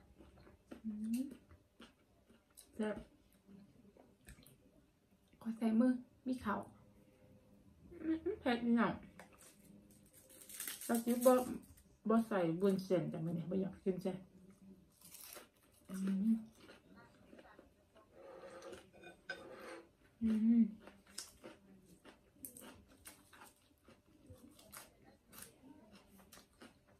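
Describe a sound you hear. Food crunches and crackles as a young woman chews close to a microphone.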